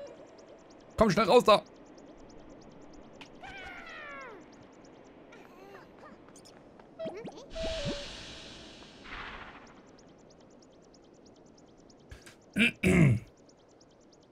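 A tool strikes a creature with sharp thuds.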